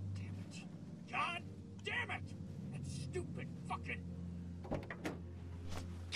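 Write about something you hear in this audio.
A man curses angrily, muffled as if through a closed car window.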